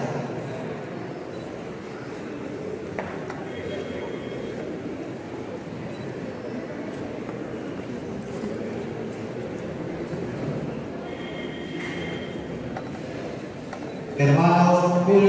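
A man prays aloud through a microphone in a reverberant hall.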